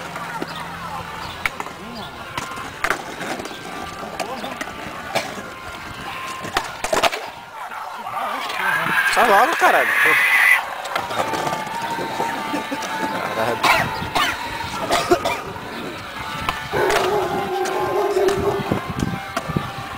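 A skateboard deck clacks against the ground.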